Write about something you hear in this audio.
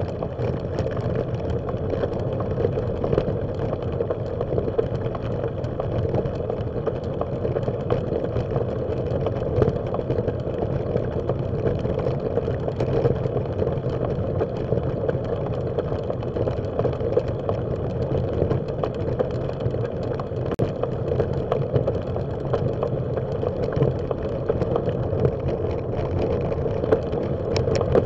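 Tyres crunch steadily over a gravel path.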